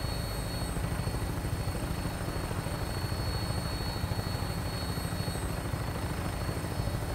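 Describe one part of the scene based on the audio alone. Helicopter rotors thump steadily and loudly.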